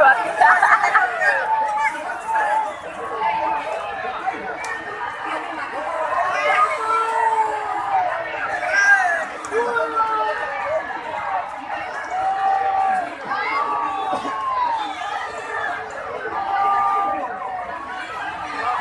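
A large crowd outdoors chatters and shouts in many overlapping voices.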